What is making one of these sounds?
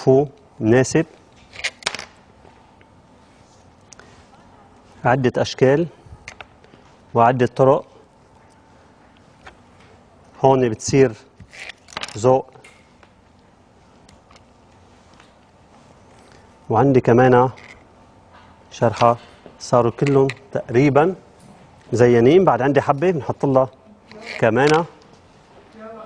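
A young man talks calmly into a microphone, in short bursts with pauses.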